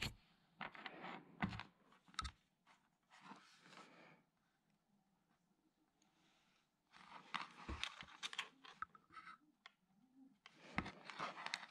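A plastic plug adapter knocks and rattles as it is handled.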